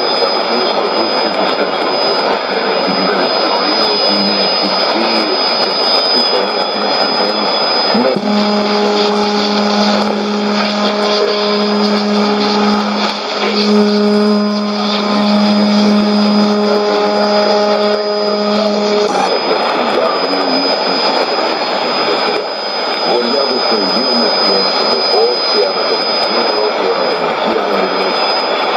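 A shortwave radio gives off rough static and crackling noise.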